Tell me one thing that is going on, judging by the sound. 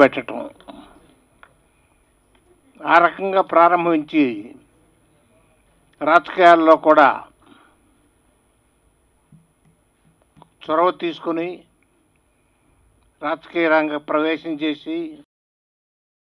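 An elderly man speaks slowly into a microphone, in bursts with pauses.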